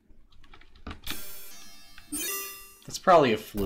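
A retro computer game plays a short run of electronic bleeps.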